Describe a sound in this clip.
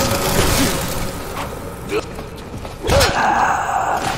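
A metal wrench strikes a creature with heavy thuds.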